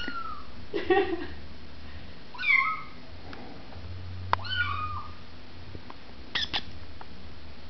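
A kitten meows in high, short cries.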